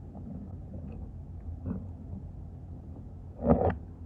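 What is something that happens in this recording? Metal tongs poke and scrape into crumbly dry clay.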